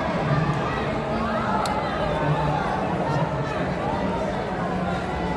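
A large crowd murmurs and chatters in a big echoing hall.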